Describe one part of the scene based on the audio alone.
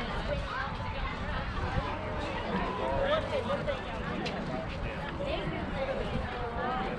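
Children shout and chatter at a distance outdoors.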